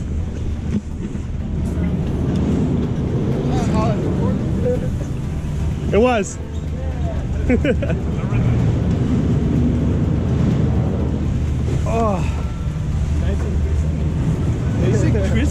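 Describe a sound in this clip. A chairlift rumbles and clanks steadily.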